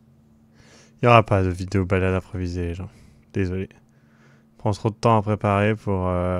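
A young man speaks close into a microphone with animation.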